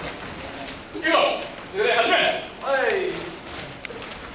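A man shouts loud commands in an echoing hall.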